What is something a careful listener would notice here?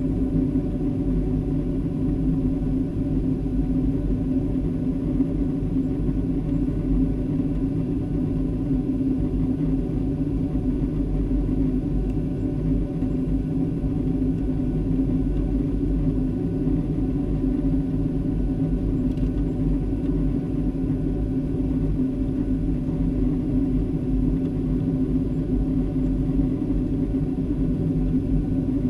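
Jet engines roar steadily in a low, constant drone inside an airliner cabin.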